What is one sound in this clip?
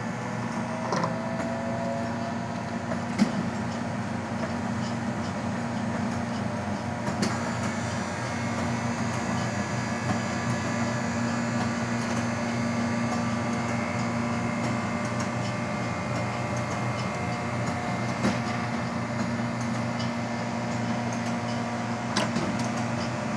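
Paper cups tap and knock as they are set down.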